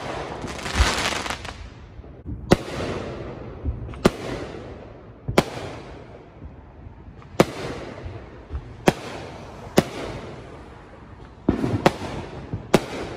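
Fireworks bang and crackle nearby, echoing outdoors.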